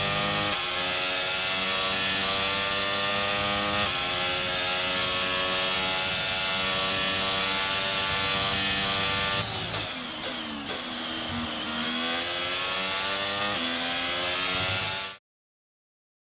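A racing car's engine screams at high revs and shifts through gears.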